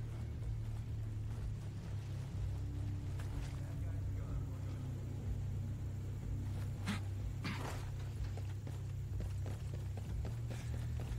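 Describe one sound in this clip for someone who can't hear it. Boots thud and scuff on dirt and gravel at a jogging pace.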